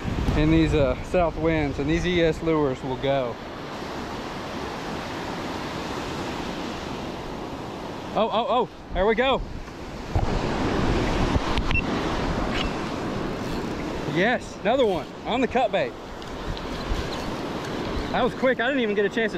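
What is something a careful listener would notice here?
Waves break and wash onto the shore nearby.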